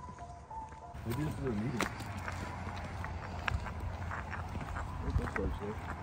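Footsteps crunch and scuff on a paved road outdoors.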